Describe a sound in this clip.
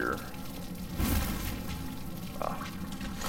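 Flames burst up with a sudden whoosh and crackle.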